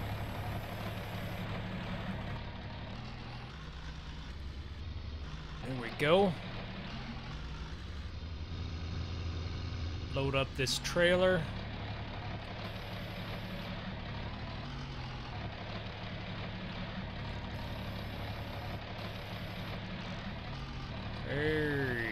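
A tractor engine rumbles steadily at low speed.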